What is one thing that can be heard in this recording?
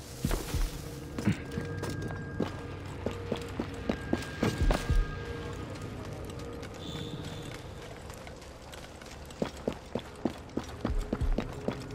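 Hands and feet scrape and thud while climbing a wall.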